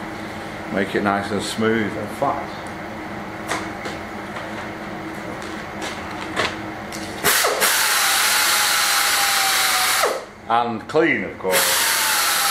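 A middle-aged man talks casually, close by.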